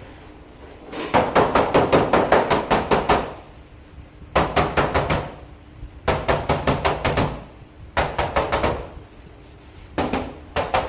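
A hammer taps on a car's sheet metal body in quick bursts.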